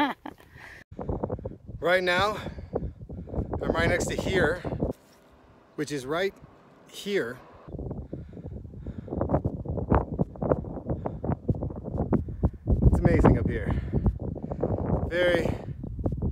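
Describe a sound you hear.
A man talks calmly and with animation close to the microphone, outdoors.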